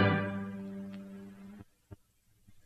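A violin plays a sustained note that quickly fades away.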